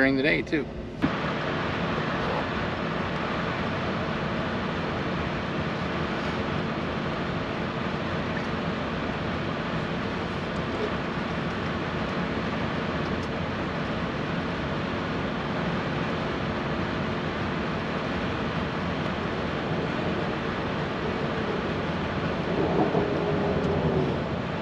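A train rumbles steadily along the tracks, heard from inside.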